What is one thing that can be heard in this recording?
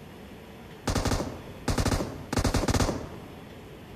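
Bursts of rapid gunfire ring out.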